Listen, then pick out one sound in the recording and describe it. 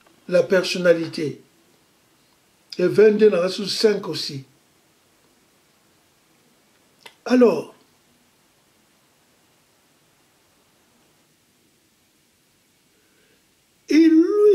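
An elderly man speaks with animation close to a microphone, in short bursts with pauses.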